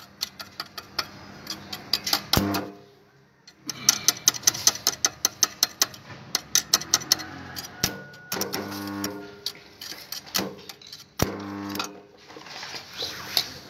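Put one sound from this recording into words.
A metal tool clicks and taps against a motorbike's brake parts.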